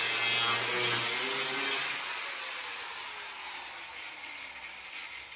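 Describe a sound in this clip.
A belt grinder whirs loudly and slowly winds down.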